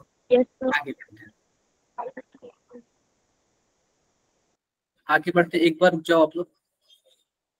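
A young man speaks calmly over an online call, in short bursts with long pauses.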